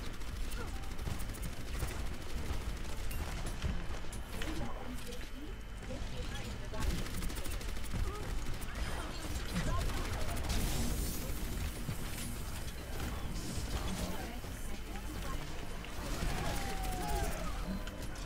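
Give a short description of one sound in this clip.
Game explosions and energy blasts boom.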